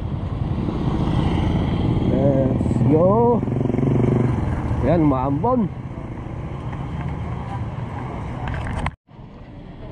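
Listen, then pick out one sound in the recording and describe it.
Motorcycle engines rumble and rev along a street nearby.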